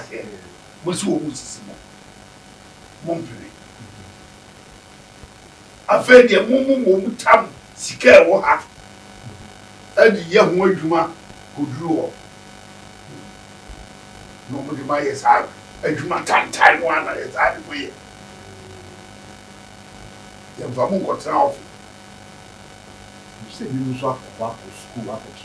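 An elderly man speaks with animation into a nearby microphone, with pauses.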